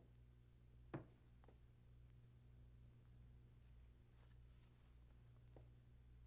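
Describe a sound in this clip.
A door handle clicks and rattles.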